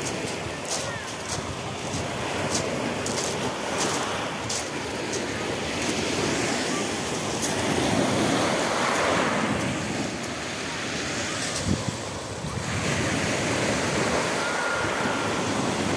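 Small waves wash onto a pebble shore and draw back.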